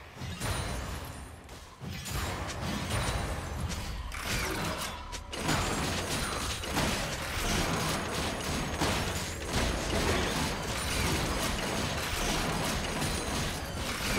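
Magic blasts and zaps crackle and boom in a busy fight.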